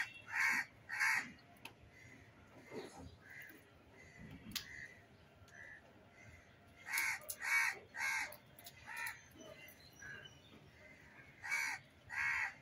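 A monkey chews and munches on food close by.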